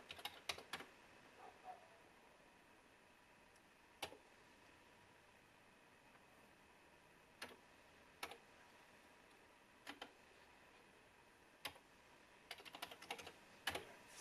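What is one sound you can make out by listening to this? Keys clack on a computer keyboard in short bursts.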